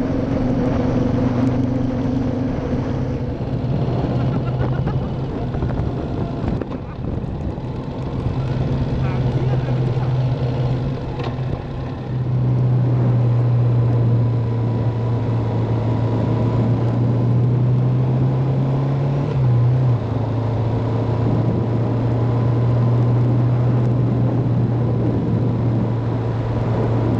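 Wind rushes past while riding.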